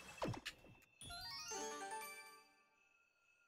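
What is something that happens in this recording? A video game plays short chiming sound effects.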